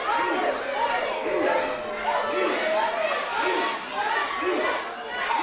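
A large crowd chants together in a steady rhythm in an echoing hall.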